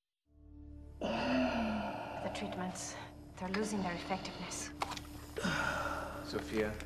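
A man breathes heavily and with effort.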